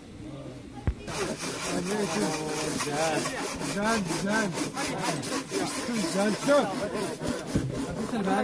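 Several young men talk and call out together outdoors.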